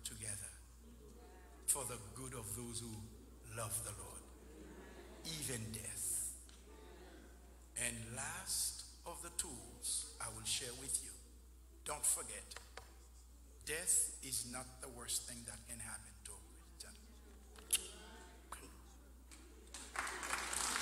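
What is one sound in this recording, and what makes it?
An elderly man preaches with animation into a microphone, heard through a loudspeaker in a large room.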